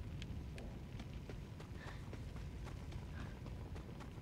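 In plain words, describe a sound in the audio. Footsteps run on hard ground.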